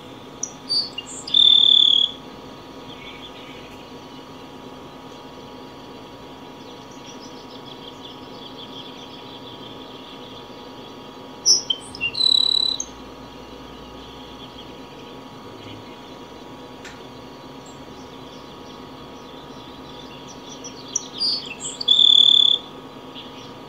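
A small bird sings a short buzzy song close by, three times.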